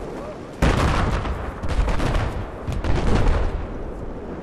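A rifle fires rapid, loud shots close by.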